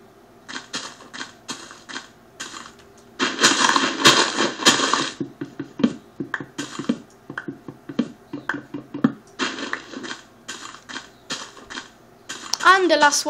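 Leaves crunch in quick, repeated bursts as blocks are broken in a video game.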